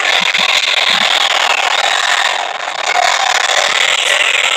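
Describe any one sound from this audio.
An energy beam crackles and roars.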